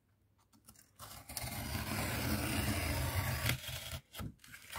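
A knife scores along cardboard with a steady scraping.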